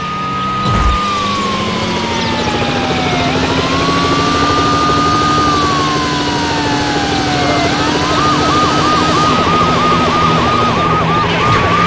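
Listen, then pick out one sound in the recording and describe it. A police siren wails up and down, then switches to a fast yelp.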